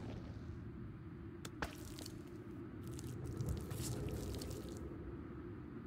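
Wet flesh squelches and slaps as it is handled.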